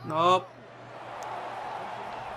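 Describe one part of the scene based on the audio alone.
A stadium crowd cheers.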